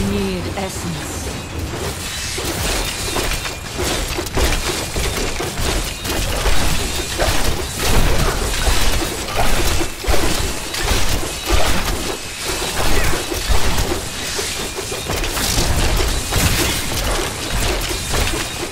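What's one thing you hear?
Weapons strike a giant spider over and over with sharp hits.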